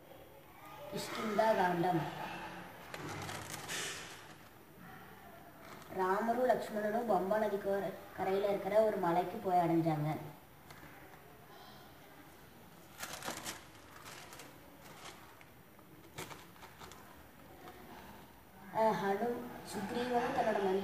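A young girl speaks calmly into a microphone, with pauses.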